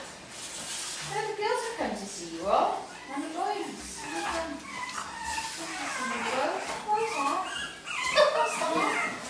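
Dogs whine and yelp excitedly.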